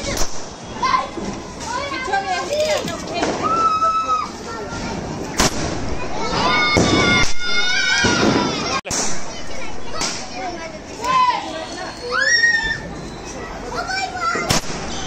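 A firework fuse fizzes and sputters.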